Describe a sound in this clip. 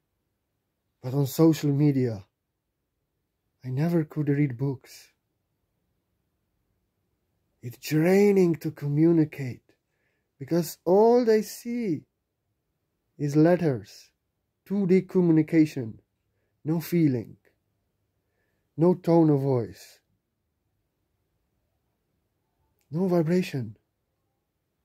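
A man speaks slowly and calmly close by, in short phrases with long pauses.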